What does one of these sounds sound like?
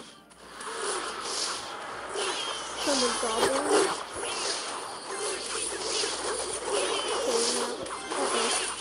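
Cartoonish battle sound effects clash and pop.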